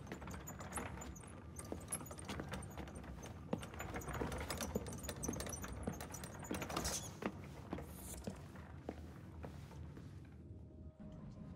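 A cloth sheet rustles as it is pulled back.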